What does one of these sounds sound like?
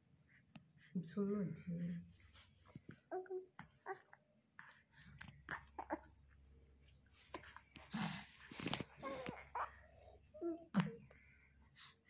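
A baby coos and babbles softly up close.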